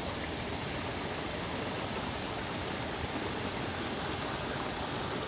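A small stream trickles gently.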